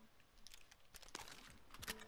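A gun clicks and rattles as it is picked up.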